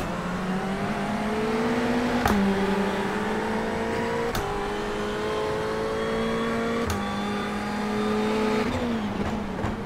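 A racing car engine revs hard and climbs in pitch, dropping sharply with each gear shift.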